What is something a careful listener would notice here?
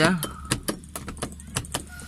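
A small plastic switch clicks.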